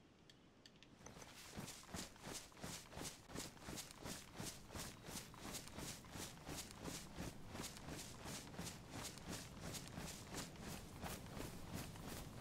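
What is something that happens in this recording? Footsteps crunch quickly through dry leaves and grass.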